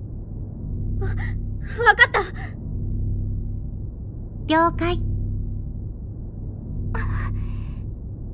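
A second young girl answers in a soft, hesitant voice.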